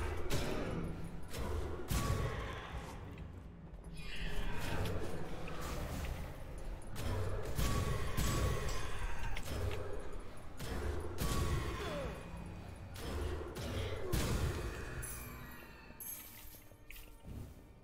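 Sharp hits and blasts land in rapid bursts during a fight.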